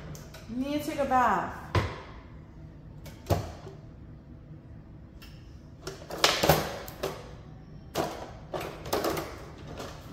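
Utensils clatter and knock on a counter.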